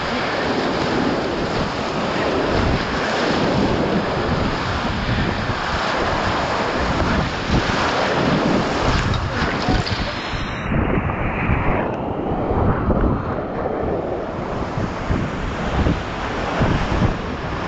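Water splashes and crashes against a kayak.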